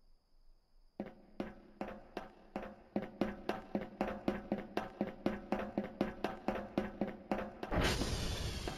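Footsteps clang steadily on a metal walkway.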